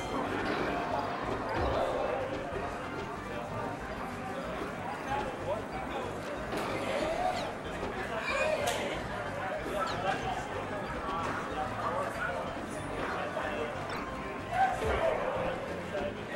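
Young men talk and react with animation nearby.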